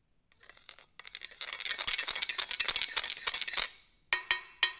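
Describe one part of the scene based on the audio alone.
A wooden spoon scrapes and taps rapidly against a metal colander.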